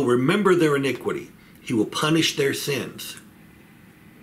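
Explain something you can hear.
An older man speaks calmly, close to the microphone.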